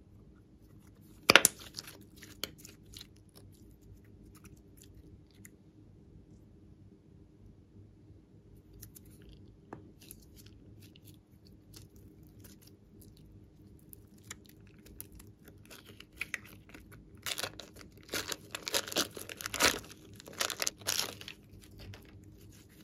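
Sticky slime squishes, squelches and crackles between hands.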